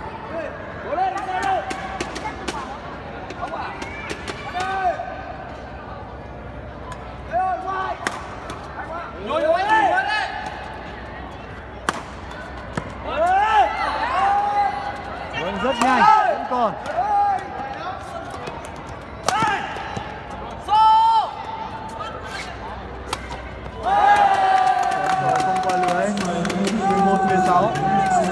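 Sneakers squeak sharply on a court floor in a large echoing hall.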